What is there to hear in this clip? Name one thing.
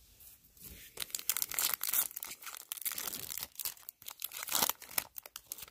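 A foil card pack crinkles as it is handled close by.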